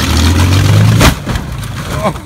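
A car lands with a heavy thud.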